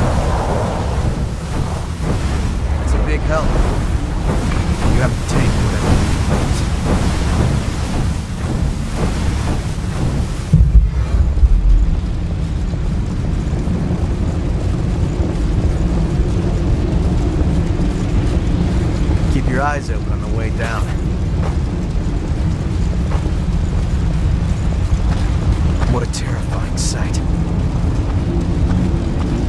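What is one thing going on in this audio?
Fire roars steadily all around.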